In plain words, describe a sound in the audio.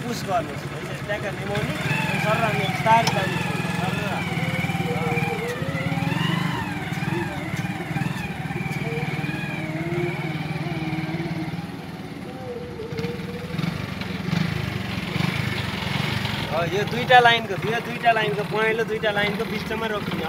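A motorcycle engine rumbles steadily nearby.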